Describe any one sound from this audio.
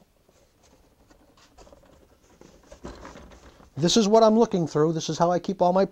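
A cardboard box scrapes and rustles as it is handled.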